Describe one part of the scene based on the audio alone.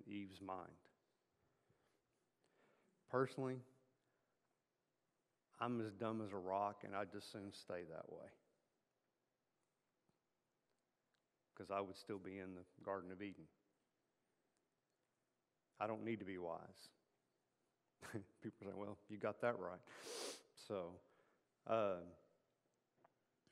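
A middle-aged man speaks calmly through a microphone in a large room, with pauses between phrases.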